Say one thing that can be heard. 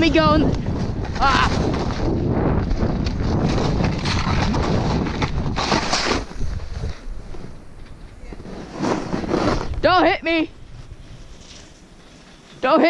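A snowboard hisses and swishes through deep powder snow.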